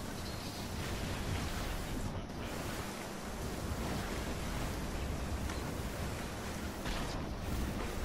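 Water splashes as someone wades through a stream.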